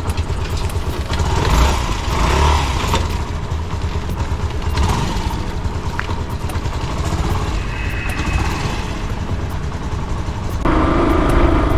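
A motorcycle engine idles and revs up in short bursts close by.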